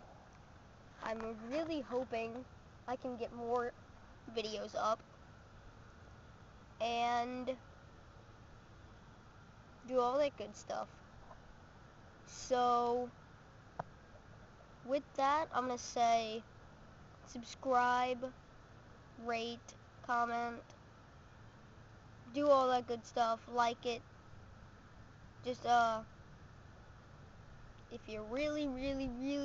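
A young girl talks close to the microphone in short bursts with pauses.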